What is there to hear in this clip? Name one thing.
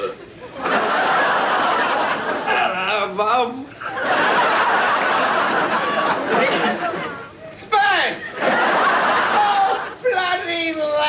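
A middle-aged man laughs loudly and wheezes close by.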